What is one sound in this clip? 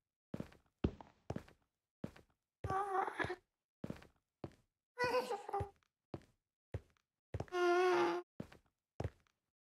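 Footsteps thud steadily on a hard surface.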